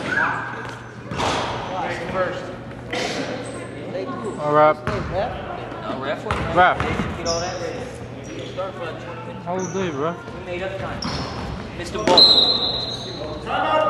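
Men shout and call out across a large echoing gym.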